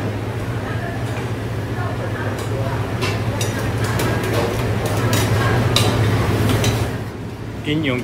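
Metal tongs clink against a stone plate.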